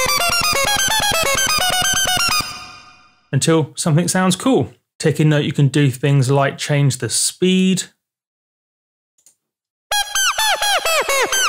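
A synthesizer plays a quick melody of short plucked notes.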